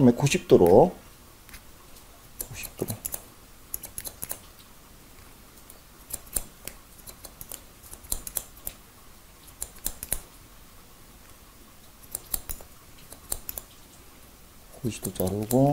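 Scissors snip hair in quick, light clicks.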